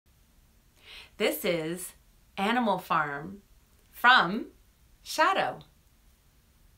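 A woman speaks cheerfully and with animation close to a microphone.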